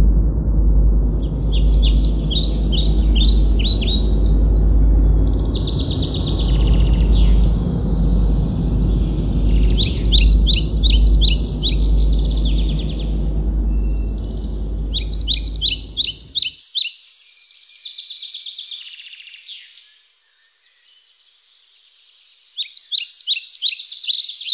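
A small bird chirps in rapid, shrill bursts close by.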